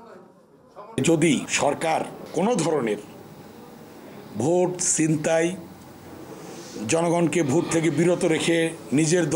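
An older man speaks steadily into a microphone, close and loud.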